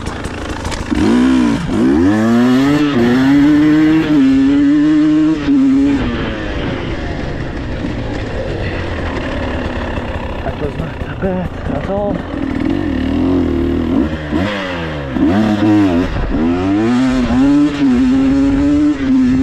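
An enduro motorcycle accelerates hard through the gears.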